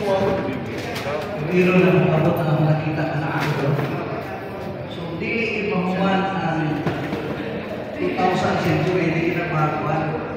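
A man speaks loudly through a microphone and loudspeaker in a large echoing hall.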